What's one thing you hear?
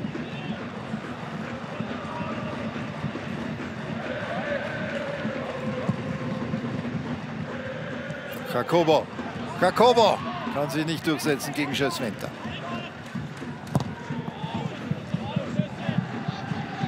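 A large stadium crowd chants and cheers in the open air.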